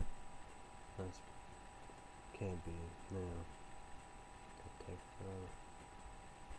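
A young man speaks quietly and haltingly into a computer microphone.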